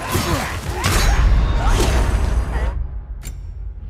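A heavy body crashes to the ground with a deep boom.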